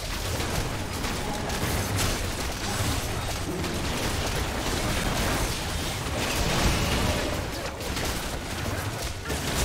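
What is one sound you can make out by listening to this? Game spell effects crackle and blast during a fight.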